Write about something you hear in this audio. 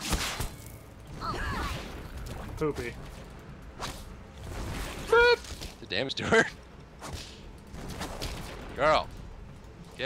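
Magic spells whoosh and crackle in quick bursts.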